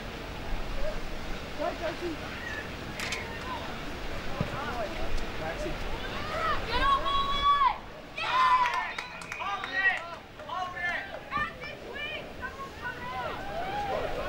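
Young female players shout and call out to each other outdoors.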